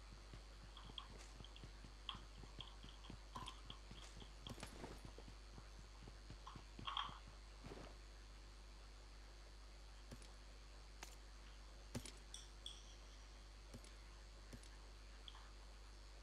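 Gear rustles and clicks as items are picked up.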